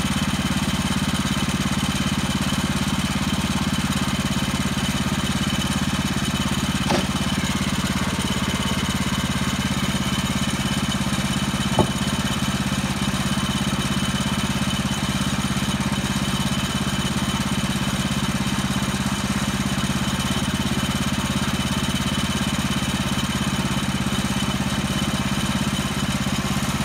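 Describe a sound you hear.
A sawmill engine runs with a steady, low drone.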